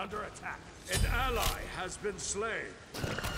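Game sound effects burst and whoosh.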